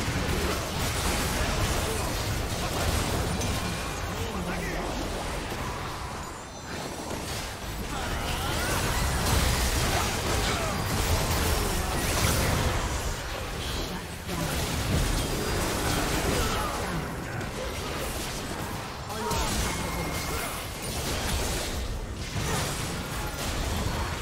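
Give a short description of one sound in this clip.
Spell blasts and weapon clashes from a video game battle crackle and boom in quick bursts.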